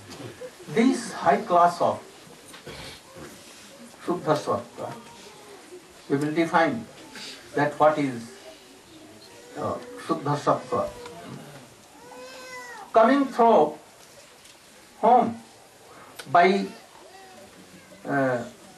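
An elderly man speaks slowly into a microphone, heard through a loudspeaker, with pauses between phrases.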